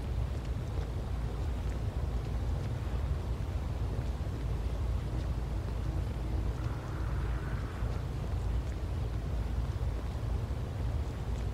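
Soft footsteps pad slowly across a hard floor.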